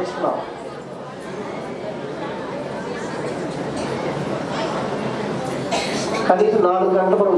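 An audience laughs together.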